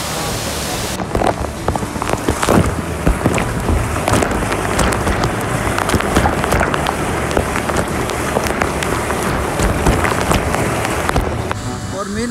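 A waterfall roars and splashes close by.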